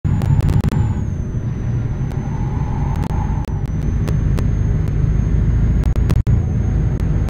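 A truck engine rumbles steadily at low revs.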